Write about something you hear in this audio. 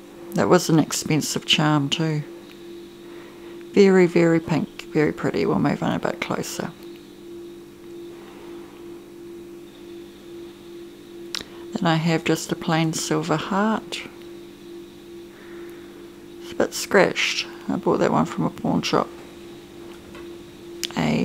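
Small metal beads click softly as they slide along a bracelet chain.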